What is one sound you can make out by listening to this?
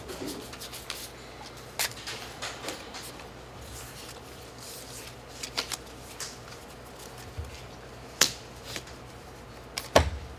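Playing cards shuffle and tap against each other in the hands.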